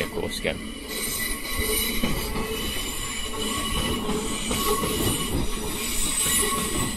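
An electric train hums and whines as it rolls slowly past.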